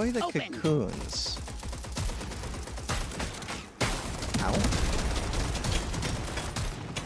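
Rapid gunfire crackles and rattles.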